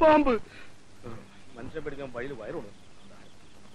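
A man speaks hurriedly.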